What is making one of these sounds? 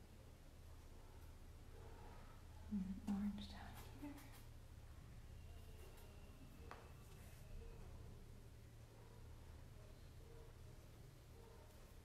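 A paintbrush softly dabs on paper.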